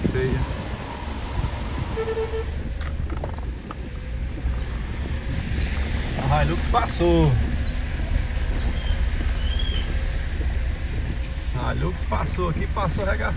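Heavy rain drums steadily on a car's roof and windows.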